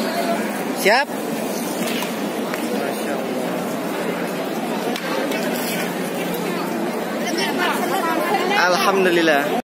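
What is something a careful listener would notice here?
A crowd murmurs and chatters all around outdoors.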